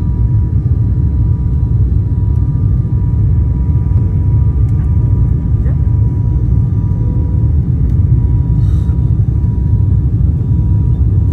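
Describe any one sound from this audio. Jet engines roar steadily in a low rumble inside an aircraft cabin.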